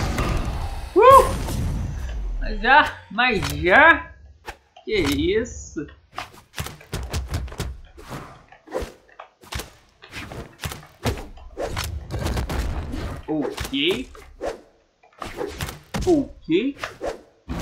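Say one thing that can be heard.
A character voice shouts out in short cries.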